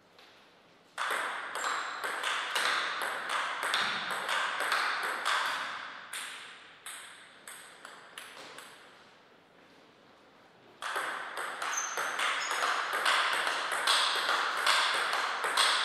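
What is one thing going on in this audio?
A table tennis ball clicks back and forth off paddles and the table in a fast rally.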